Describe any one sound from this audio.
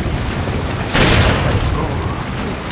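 A gun fires a loud shot that echoes.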